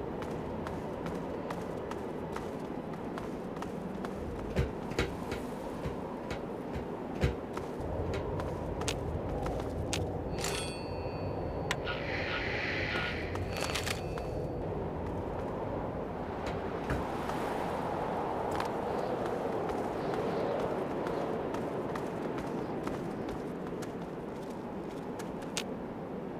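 Footsteps thud and clatter steadily.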